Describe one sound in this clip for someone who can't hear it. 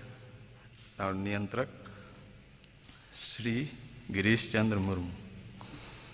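A man speaks into a microphone in a large echoing hall.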